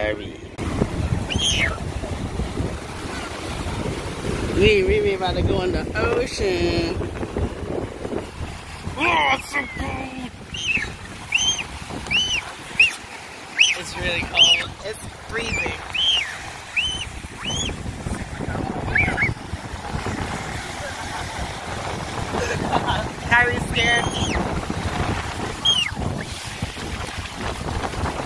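Waves break and wash up on the shore.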